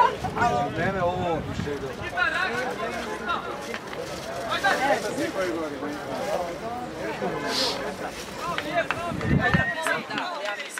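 Young men call and shout to each other across an open outdoor field.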